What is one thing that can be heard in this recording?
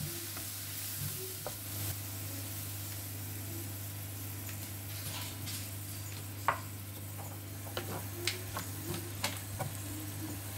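A spatula scrapes and clatters against a frying pan.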